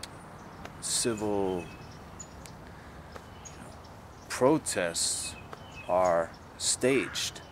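A man speaks calmly and close by, in short phrases with long pauses.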